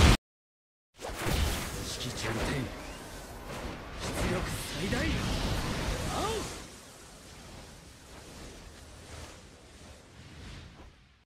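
A swirling energy blast roars and whooshes.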